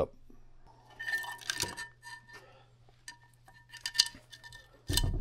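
Metal engine parts clink lightly as they are handled.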